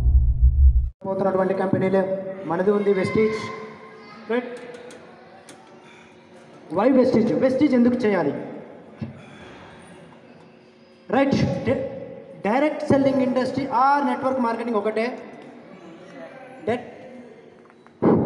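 A man speaks loudly through a microphone and a loudspeaker in a large echoing hall.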